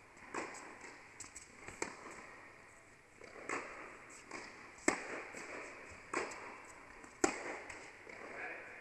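A tennis ball bounces on the court.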